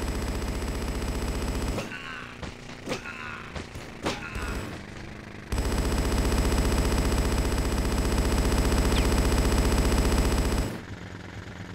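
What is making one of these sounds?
A motorcycle engine drones steadily.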